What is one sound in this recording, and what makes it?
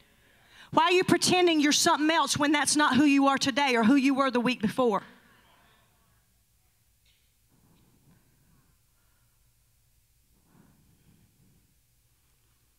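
A woman sings into a microphone, heard through loudspeakers in a large hall.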